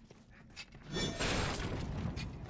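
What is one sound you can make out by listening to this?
A wooden crate smashes and splinters.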